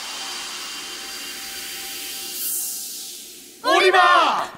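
A magical whooshing swirl rises and fades.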